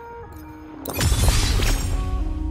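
A bright shimmering chime rings out.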